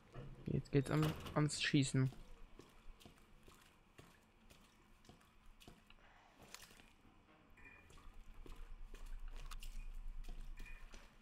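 Footsteps tread steadily on a hard floor indoors.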